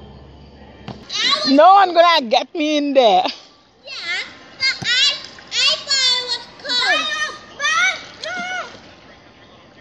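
Children shout and squeal excitedly nearby.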